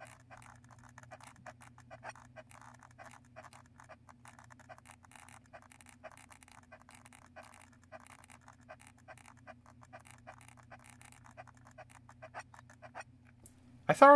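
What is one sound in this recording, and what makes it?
Plastic buttons click rapidly under thumbs.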